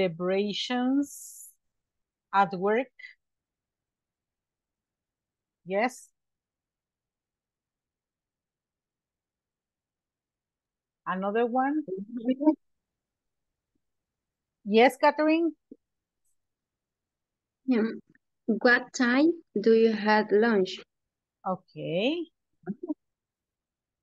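A woman speaks calmly over an online call, pausing often.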